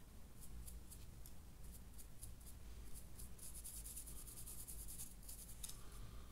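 A small brush scratches softly in quick, light strokes.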